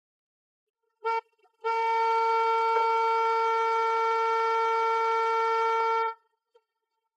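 A car horn gives a short beep, then blares in a long steady blast.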